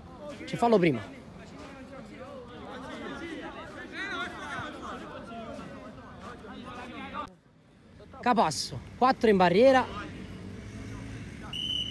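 Several young men talk and call out to each other at a distance.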